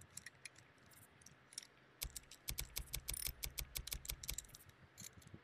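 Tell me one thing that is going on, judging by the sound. Soft menu clicks tick quickly, one after another.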